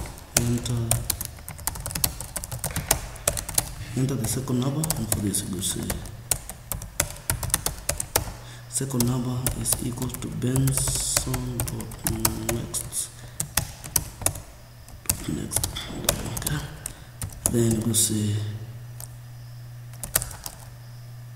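Computer keys clack in quick bursts of typing.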